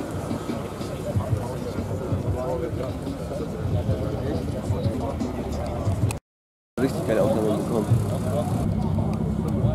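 Several men chat casually nearby outdoors.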